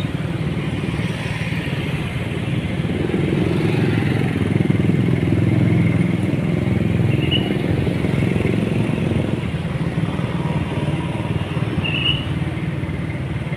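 Car engines rumble by.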